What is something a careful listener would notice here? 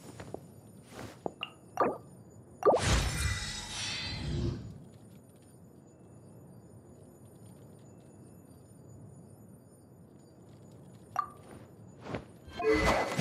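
Soft interface clicks sound as menu buttons are pressed.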